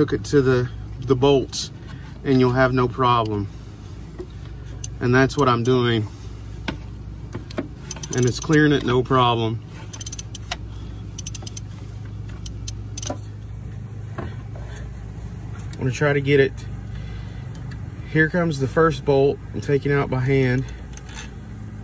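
Hands rattle and click against metal parts under an engine hood.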